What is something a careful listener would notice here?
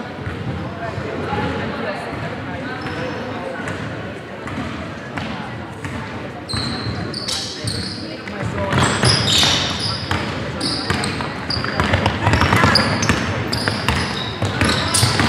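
A basketball bounces on a hardwood court, echoing in a large hall.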